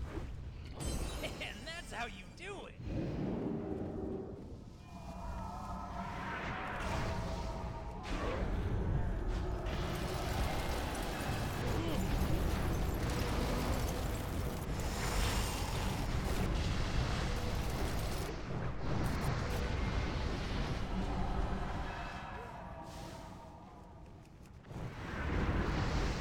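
Game spell effects and combat sounds clash and whoosh throughout.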